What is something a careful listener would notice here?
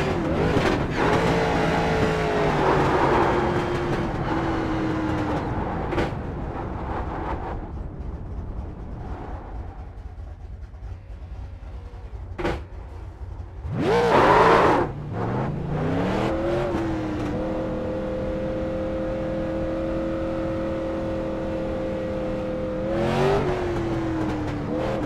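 A race car engine hums, slowing down, then revs up and holds a steady drone.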